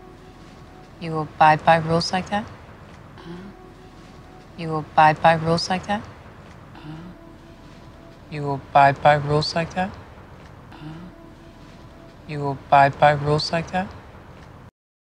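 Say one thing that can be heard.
A man asks a short question calmly.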